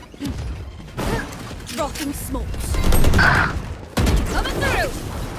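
A rifle fires several rapid shots.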